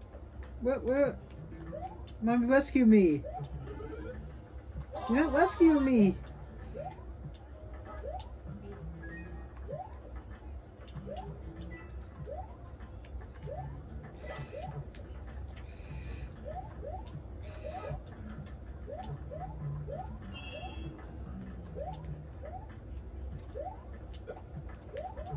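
Video game sound effects chirp and beep from small laptop speakers.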